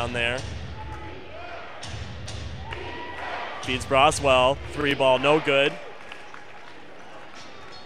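A basketball bounces on a hardwood floor.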